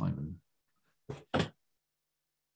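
A middle-aged man speaks briefly over an online call.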